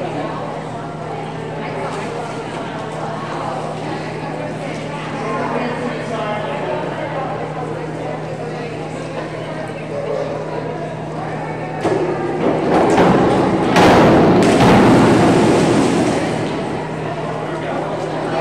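Men and women chatter in a large echoing hall.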